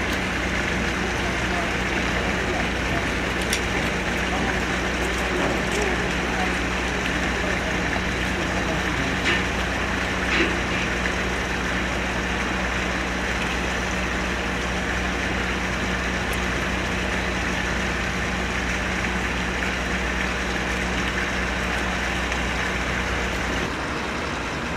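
A ship's engine hums steadily nearby.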